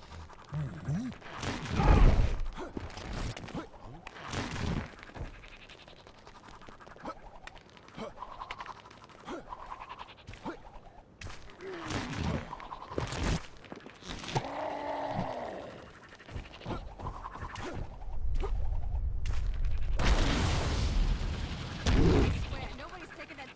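Crackling energy bursts whoosh in quick swells.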